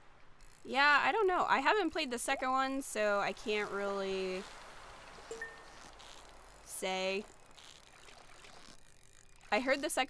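A fishing reel clicks and whirs as a line is reeled in.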